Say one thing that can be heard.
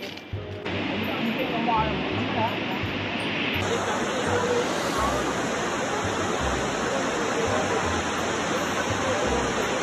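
A waterfall roars steadily as water crashes onto rocks.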